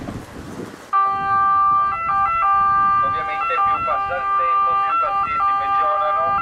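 An ambulance siren wails loudly in a two-tone pattern close by.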